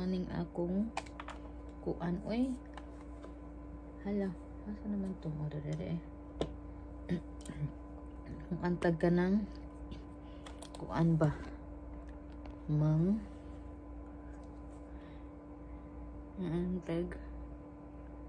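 A woman talks calmly and close by, in short phrases with pauses.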